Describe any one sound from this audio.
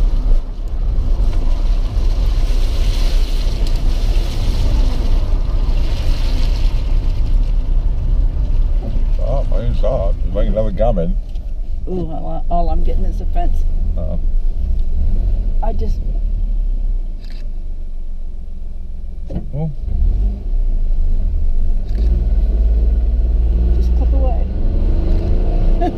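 A car engine rumbles low and steady while driving.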